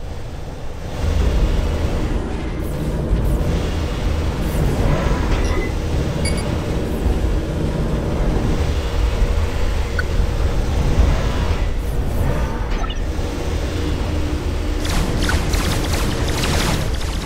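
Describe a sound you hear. Heavy war machines rumble low and steady.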